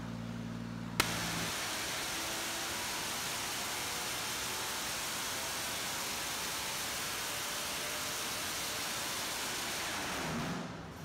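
An engine suddenly roars loudly at high revs.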